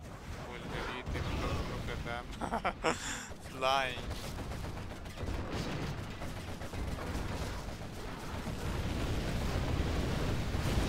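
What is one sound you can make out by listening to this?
Explosions boom and rumble in a game battle.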